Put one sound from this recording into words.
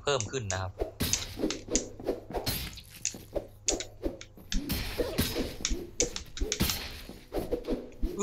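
Swords slash and clang in quick bursts.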